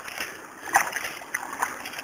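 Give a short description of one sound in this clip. Water pours and splashes from a pipe onto rocks.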